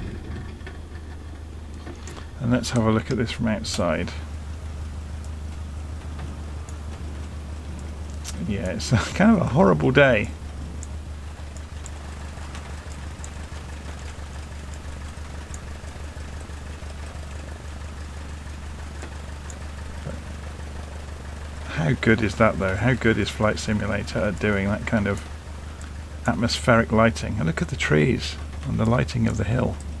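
A small propeller plane's engine idles with a steady low drone.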